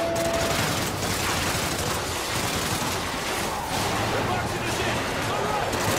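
Rapid gunfire bursts out at close range.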